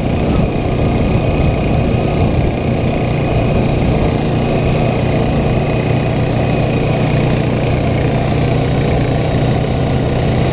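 An all-terrain vehicle engine drones steadily up close.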